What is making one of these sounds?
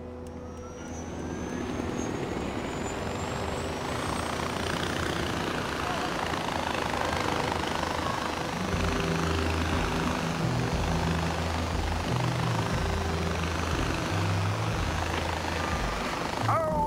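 Wind rushes past steadily and grows louder.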